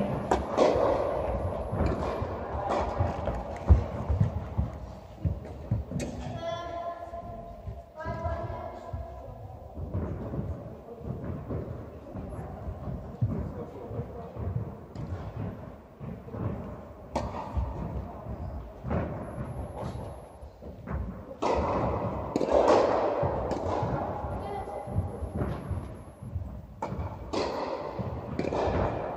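Tennis balls are struck with rackets, each hit echoing in a large hall.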